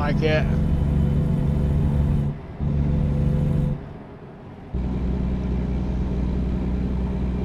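A truck engine drones low and steady, dropping away briefly twice.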